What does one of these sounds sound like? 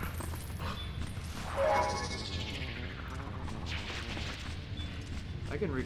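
Footsteps patter on a stone floor.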